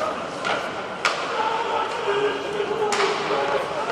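A hockey stick smacks a puck with a sharp crack.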